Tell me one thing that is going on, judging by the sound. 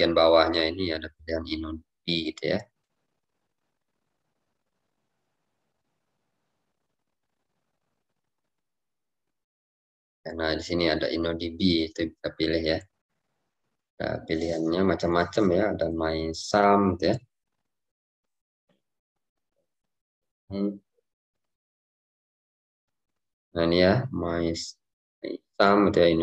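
A young man speaks calmly over an online call, in bursts with long pauses.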